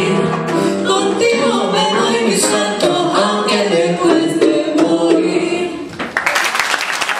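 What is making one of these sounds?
Young women sing together with animation through microphones.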